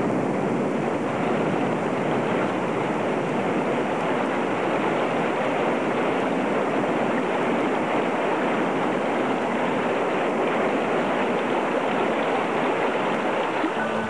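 A river rushes and churns over rapids.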